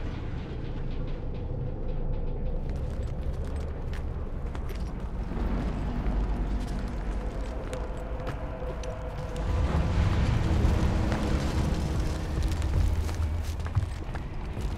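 Footsteps clank on metal walkways.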